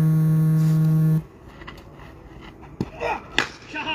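A cricket bat strikes a ball with a sharp knock outdoors.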